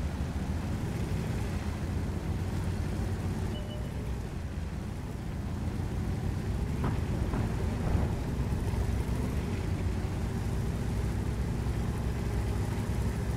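A tank engine rumbles steadily as the tank drives over rough ground.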